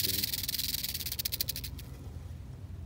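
A rattlesnake rattles its tail with a fast, dry buzz that breaks off.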